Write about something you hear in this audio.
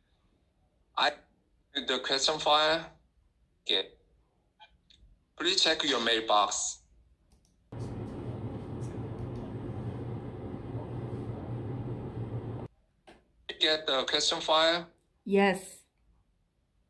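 A man speaks over an online call, heard through a phone speaker.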